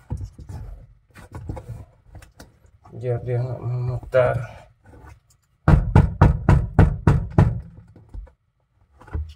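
Hands knock and rattle plastic parts close by.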